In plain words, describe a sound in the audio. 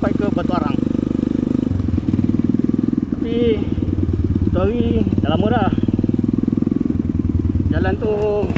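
A motorcycle engine putters steadily close by.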